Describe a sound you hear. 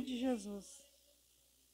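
An elderly woman speaks briefly into a microphone.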